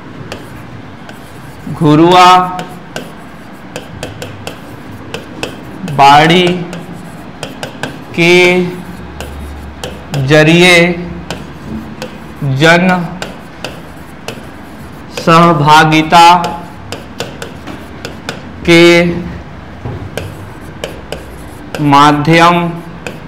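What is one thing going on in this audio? A pen taps and scratches on a board.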